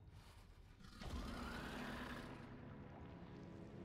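A monster lets out a loud, rumbling roar.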